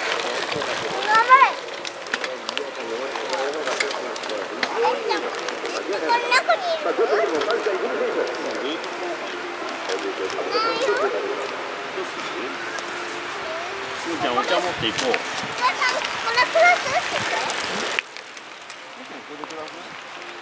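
Bicycle tyres roll and crunch over a dirt trail close by.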